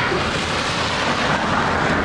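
A car drives past on a wet road, its tyres hissing.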